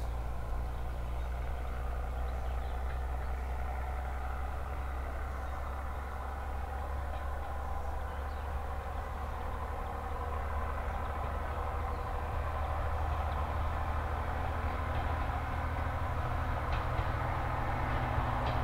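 A diesel railcar engine rumbles steadily as the train approaches, growing louder.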